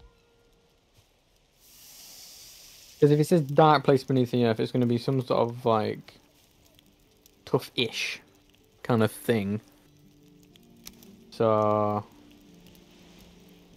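A campfire crackles close by.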